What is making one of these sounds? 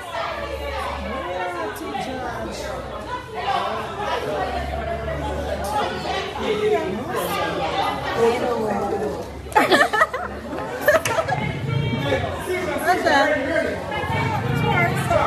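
A crowd of men and women shout and argue excitedly nearby outdoors.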